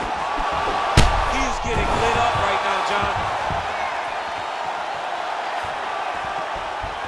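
A crowd roars and cheers steadily in a large arena.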